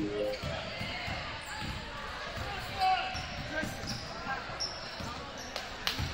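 Basketballs bounce on a wooden floor in a large echoing gym.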